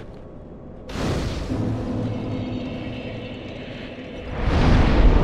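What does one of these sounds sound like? A fire ignites with a loud whoosh.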